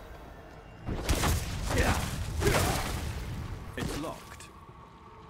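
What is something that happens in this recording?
A loud game sound effect swells and rings out.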